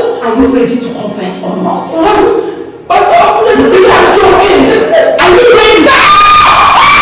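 A woman speaks loudly and angrily close by.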